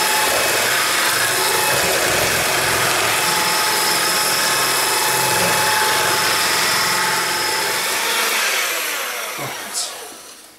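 An electric hand mixer whirs loudly and steadily, then winds down.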